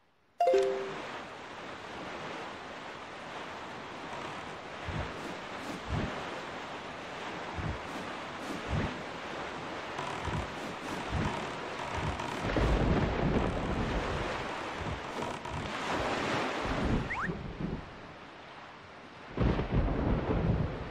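A small boat rushes over choppy water with waves splashing against its hull.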